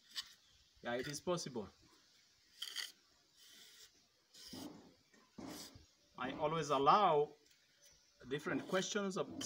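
A trowel scrapes and smooths wet cement.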